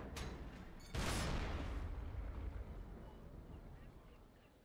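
A heavy cannon fires a shot with a booming blast.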